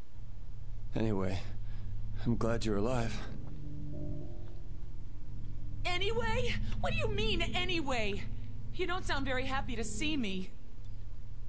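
A woman talks into a close microphone.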